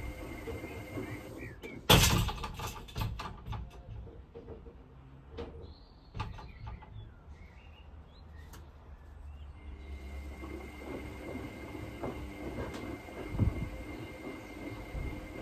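Wet laundry sloshes and thumps inside a washing machine drum.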